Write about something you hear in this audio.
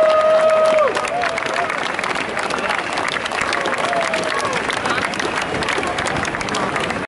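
A crowd claps hands rapidly.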